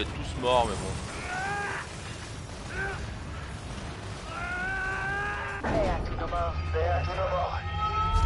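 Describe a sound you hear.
A second man answers over a radio.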